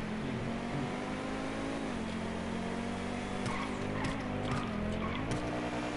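A sports car engine drones steadily at high speed, shifting pitch now and then.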